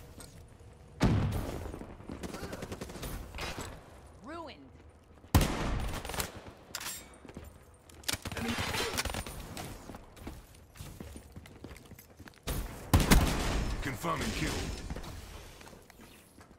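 Guns fire in loud bursts.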